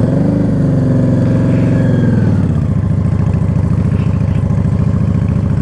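A motorcycle engine rumbles close by, revving and then settling into a loud, throbbing idle.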